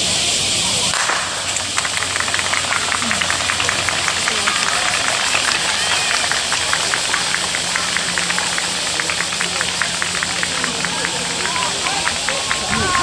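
Spectators cheer and murmur in the distance outdoors.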